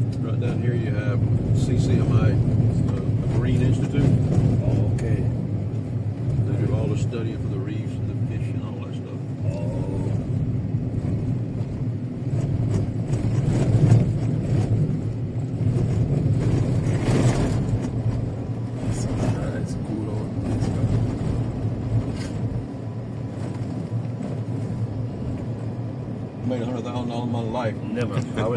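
A car engine hums steadily as the car drives along.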